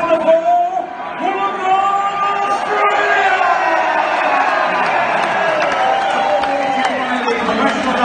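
A large crowd sings and cheers in a big echoing hall.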